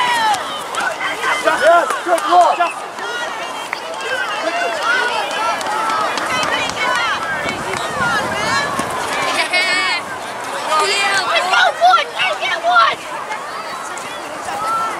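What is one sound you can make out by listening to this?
Young players call out to each other across the field.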